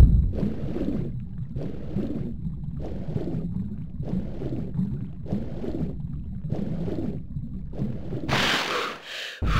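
Water swishes in slow, rhythmic strokes, muffled as if underwater.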